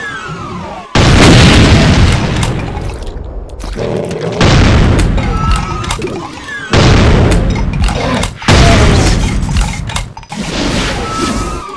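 A shotgun fires repeatedly with loud booming blasts.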